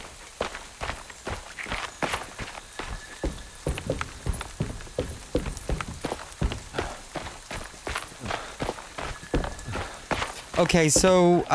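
Footsteps crunch steadily over a forest path.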